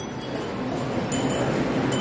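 A drum beats in a large echoing hall.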